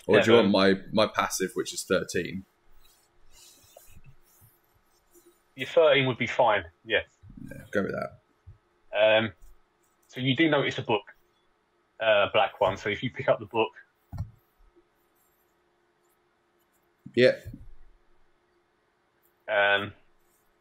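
A man talks with animation over an online call, with pauses between phrases.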